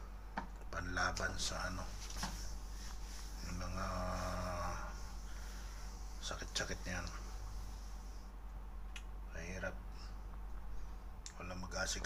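A middle-aged man speaks calmly and close up, in short bursts with pauses.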